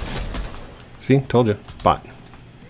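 A man speaks briefly with animation into a microphone.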